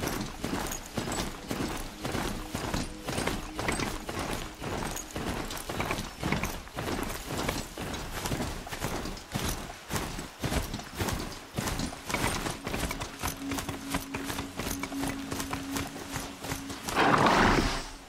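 Heavy mechanical footfalls thud and clank in a quick, steady gallop.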